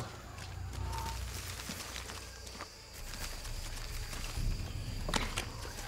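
Leaves rustle as someone pushes through dense undergrowth.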